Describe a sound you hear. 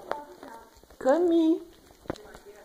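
A cat meows briefly.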